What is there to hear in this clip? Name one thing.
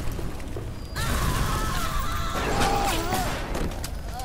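Fire bursts and roars in a blast of flame.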